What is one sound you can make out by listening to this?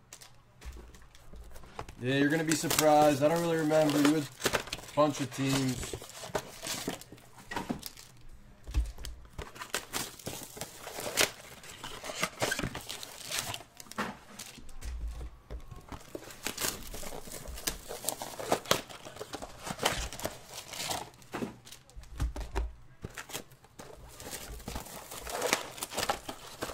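Foil card wrappers crinkle and rustle as they are handled.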